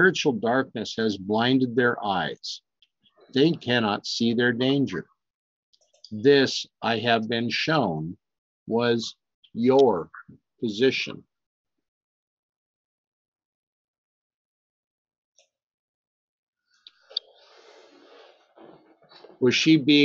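An older man speaks calmly and close to a microphone, pausing now and then.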